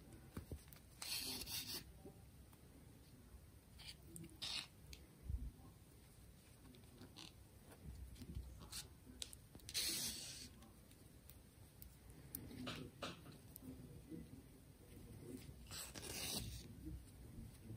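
Yarn rustles softly as thread is pulled through a knitted toy.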